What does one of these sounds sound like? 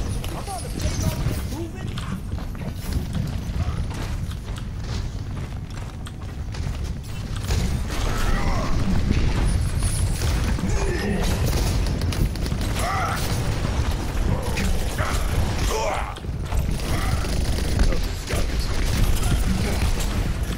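Heavy gunfire booms and rattles repeatedly.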